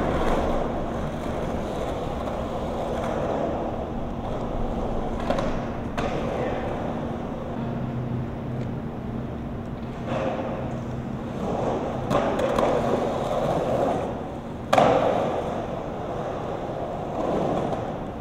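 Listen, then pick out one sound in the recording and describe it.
Skateboard wheels roll and rumble on concrete.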